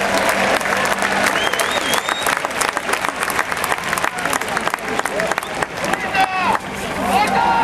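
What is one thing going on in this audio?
People clap their hands rapidly.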